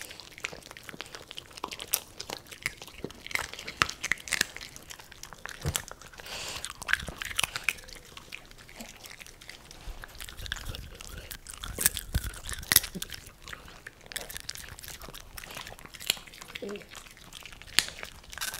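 Dogs crunch and munch on popcorn close by.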